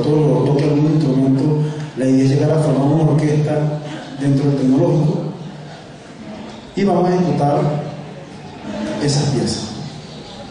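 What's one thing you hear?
A young man sings into a microphone through loudspeakers in a large echoing hall.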